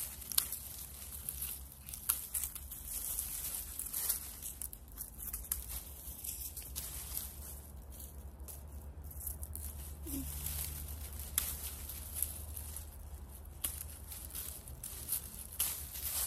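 Pruning shears snip through dry stems.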